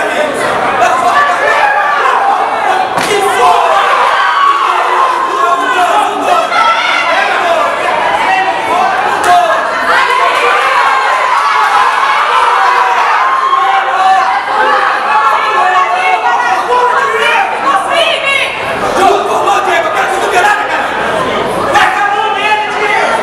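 A crowd of men and women shouts and cheers loudly and continuously.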